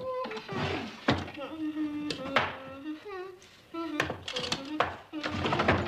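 Small objects rattle and knock inside a drawer.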